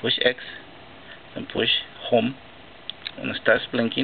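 Plastic buttons click softly as fingers press them.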